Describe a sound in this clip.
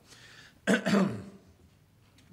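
A man coughs into a microphone.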